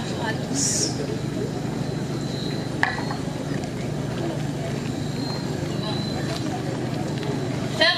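A woman speaks calmly into a microphone over loudspeakers outdoors.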